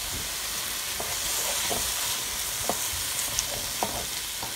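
A wooden spoon scrapes and knocks against a pan.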